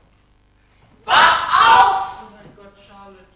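A woman cries out loudly on a stage.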